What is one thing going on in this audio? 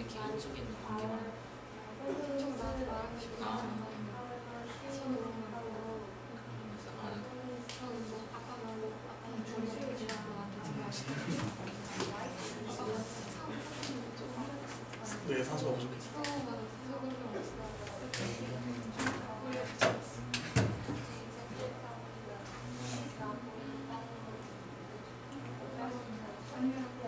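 A young woman talks calmly close by.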